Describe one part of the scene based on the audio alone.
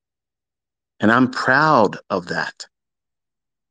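A man speaks briefly and loudly, close up.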